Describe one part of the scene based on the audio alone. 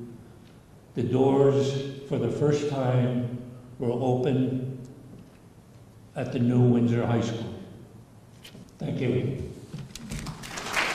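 An elderly man speaks loudly and emphatically into a microphone.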